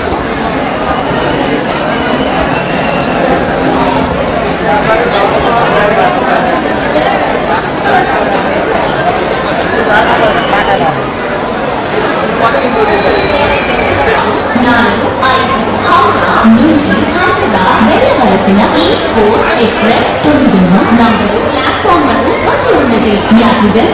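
A large crowd chatters loudly in an echoing hall.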